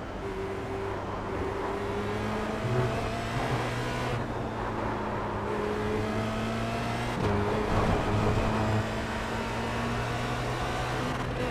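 A racing car engine hums steadily, rising and falling in pitch as the car changes gear.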